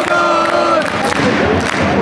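Fans clap their hands.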